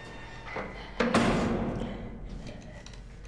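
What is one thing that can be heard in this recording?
A heavy metal door rattles and bangs loudly.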